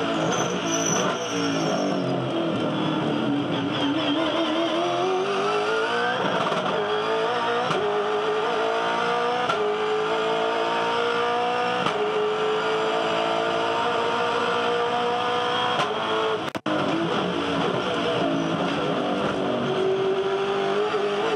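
A race car engine roars loudly close by, revving up through the gears with sharp shifts.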